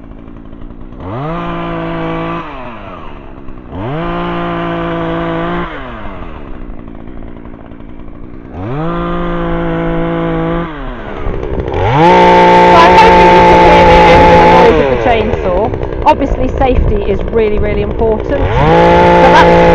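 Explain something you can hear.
A chainsaw revs loudly in repeated bursts, rising and falling.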